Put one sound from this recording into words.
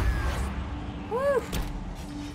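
A magical sound chimes and swells, then fades.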